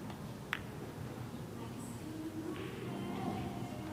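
Pool balls knock together on the table.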